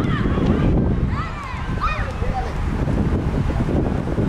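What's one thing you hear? Young women shout and cheer in the distance outdoors.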